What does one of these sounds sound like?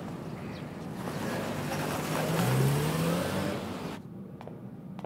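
A car engine hums as a car pulls up and stops.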